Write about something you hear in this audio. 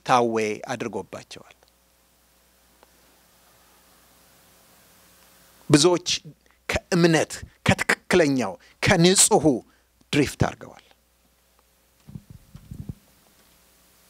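A man preaches with animation into a microphone, pausing between phrases.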